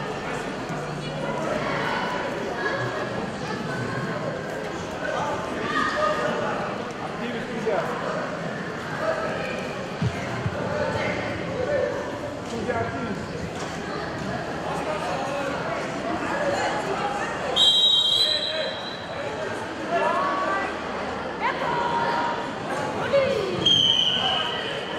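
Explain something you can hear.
Wrestlers' feet thump and shuffle on a mat.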